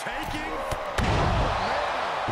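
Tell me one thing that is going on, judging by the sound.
A body slams heavily onto a wrestling ring mat with a thud.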